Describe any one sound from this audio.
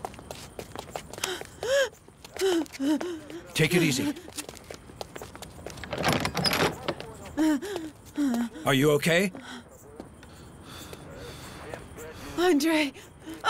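A woman speaks in distress, close by.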